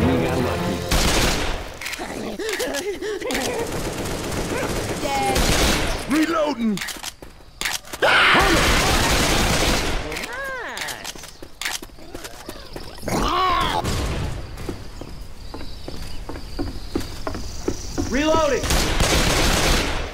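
Pistols fire in loud, rapid bursts.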